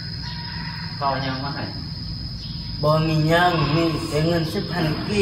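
Young men talk nearby in calm, casual voices.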